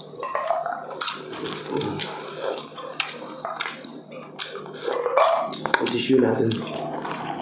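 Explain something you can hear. A man slurps a drink from a mug.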